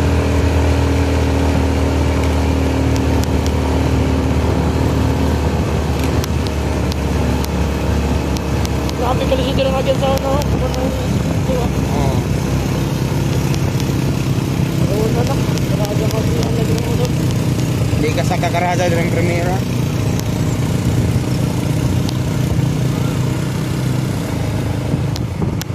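A motorcycle engine hums steadily up close as it rides along.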